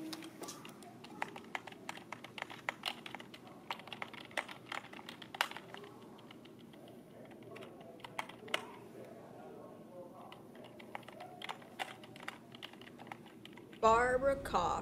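Computer keys clatter and a mouse clicks.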